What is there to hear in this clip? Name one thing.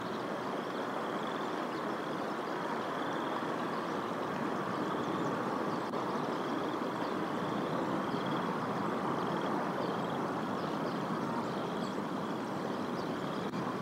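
Wind blows steadily through bare tree branches outdoors.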